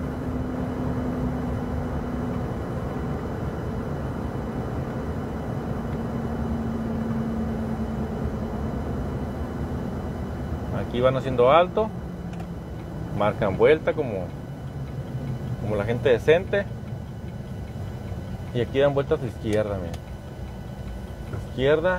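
A vehicle engine hums steadily, with road noise.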